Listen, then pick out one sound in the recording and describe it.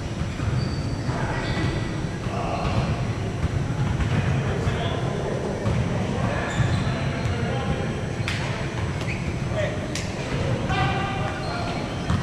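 Young men call out and chatter in a large echoing gym.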